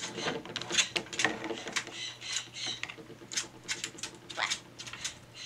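A parrot chirps and squawks shrilly up close.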